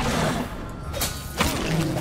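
A sword strikes with a sharp clang.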